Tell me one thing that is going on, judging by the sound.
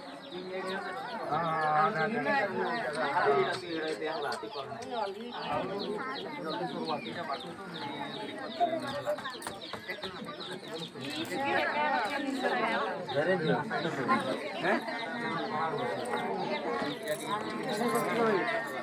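A crowd of women chatter and talk over one another nearby.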